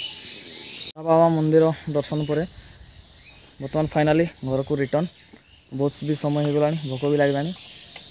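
A young man talks calmly and close up.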